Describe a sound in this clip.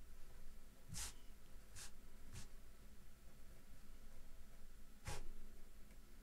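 A pencil taps lightly on paper.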